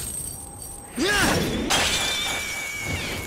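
Metal chains shatter with a loud crash.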